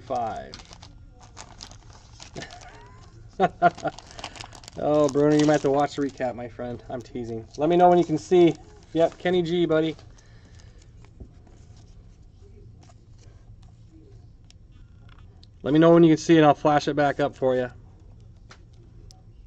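Trading cards rustle and slide against each other in a person's hands.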